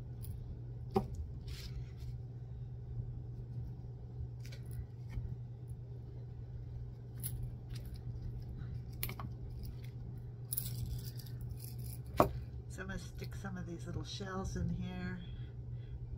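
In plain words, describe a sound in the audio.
Small shells click and rattle as they are handled.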